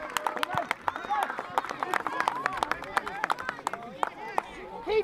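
A crowd of spectators claps outdoors.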